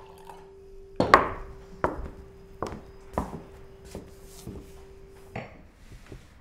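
High heels click on a hard floor.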